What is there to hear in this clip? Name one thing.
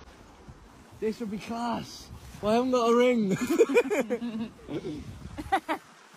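A young man laughs and speaks with animation close by.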